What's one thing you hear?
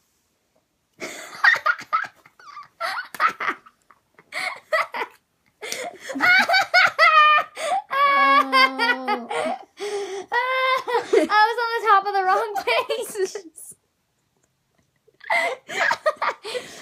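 A young girl laughs and talks excitedly close by.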